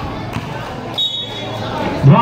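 A referee's whistle blows a short blast.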